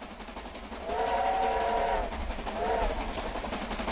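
A steam locomotive whistle blows.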